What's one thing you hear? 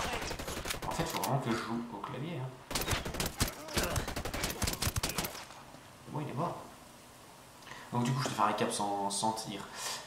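A young man talks casually into a microphone, close by.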